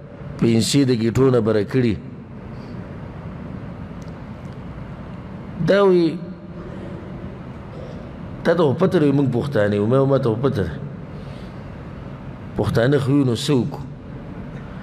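A man speaks calmly into a microphone, in bursts with pauses.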